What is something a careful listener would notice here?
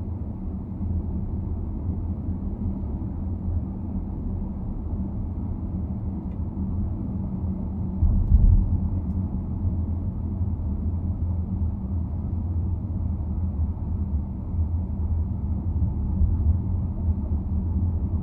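A car's engine hums steadily as it drives along a road, heard from inside.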